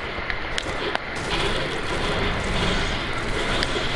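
A pickaxe chops repeatedly at a tree.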